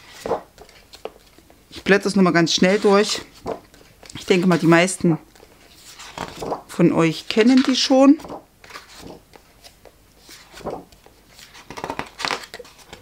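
Sheets of paper rustle and flap as they are flipped over by hand.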